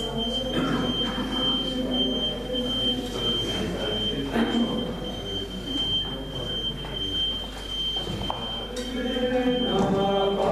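Men chatter and murmur in an echoing hall.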